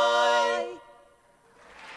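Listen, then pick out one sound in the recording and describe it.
Four women sing together in close harmony, ending a song.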